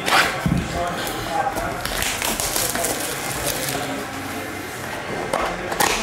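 Plastic wrapping crinkles and tears as a pack is opened.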